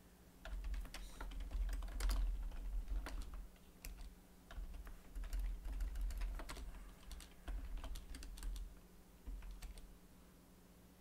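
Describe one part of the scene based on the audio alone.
Keys clatter on a computer keyboard.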